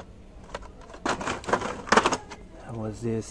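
Cardboard and plastic toy packages clatter and rustle as a hand rummages through them.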